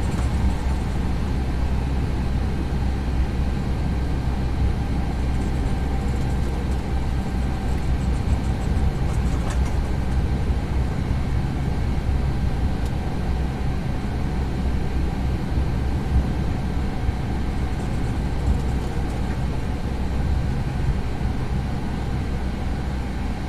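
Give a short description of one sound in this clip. A jet airliner's engines hum steadily as it taxis.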